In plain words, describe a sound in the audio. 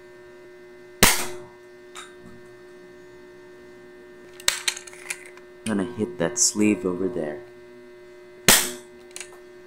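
A plastic toy blaster fires with sharp snaps.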